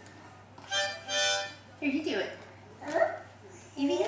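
A woman blows a harmonica up close.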